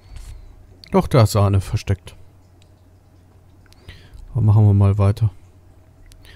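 A man speaks loudly and with animation, close to a microphone.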